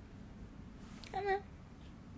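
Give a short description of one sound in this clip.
A young woman gives a short, high laugh close to the microphone.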